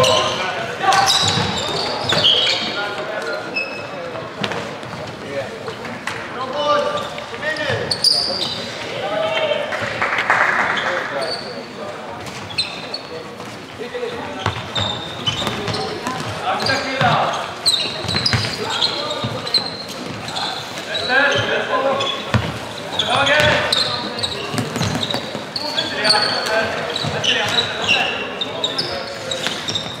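Sneakers squeak sharply on an indoor court floor.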